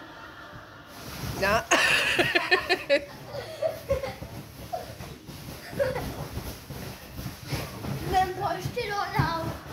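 A dog shuffles and thumps on a soft cushion bed.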